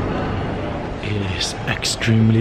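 A young man speaks calmly close to the microphone.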